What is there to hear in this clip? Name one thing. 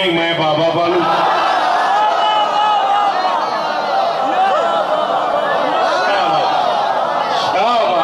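A crowd of men chants together.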